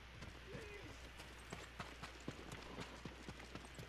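Footsteps run over dirt.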